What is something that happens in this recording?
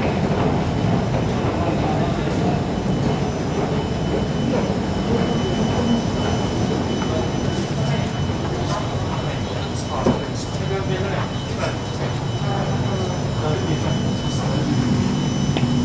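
A train's motors hum steadily nearby.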